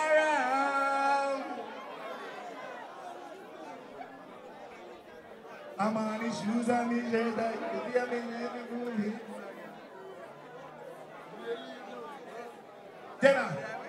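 A crowd of men and women talks and shouts close by.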